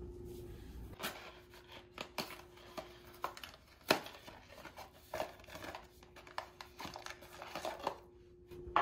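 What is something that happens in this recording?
Paper crinkles and rustles as it is folded and torn open.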